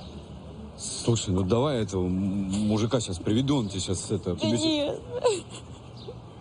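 A young woman sobs and cries nearby.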